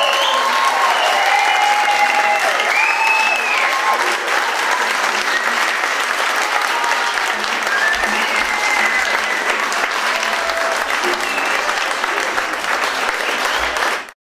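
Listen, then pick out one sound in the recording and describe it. People in an audience cheer and whistle.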